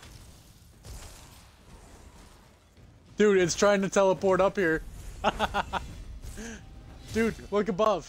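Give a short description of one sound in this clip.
A magic blast bursts and crackles.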